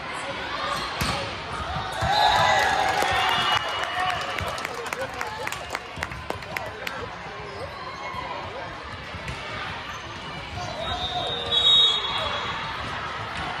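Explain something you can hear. A volleyball thumps off players' hands.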